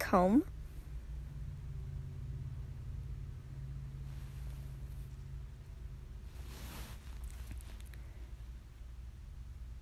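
A comb scrapes through hair.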